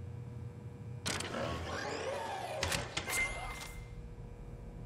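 A heavy mechanical panel hisses and clanks open.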